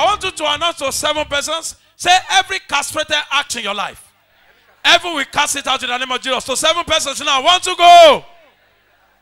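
A man speaks forcefully through a microphone, his voice loud and amplified.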